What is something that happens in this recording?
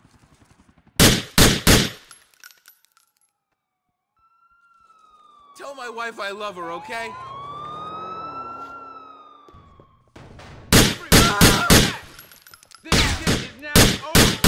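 Gunshots ring out in short, rapid bursts.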